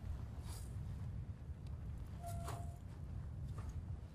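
Footsteps scuff on a dirt floor.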